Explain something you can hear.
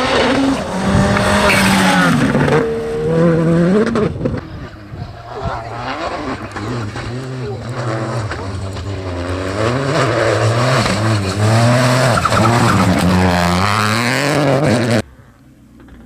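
Gravel sprays from spinning tyres.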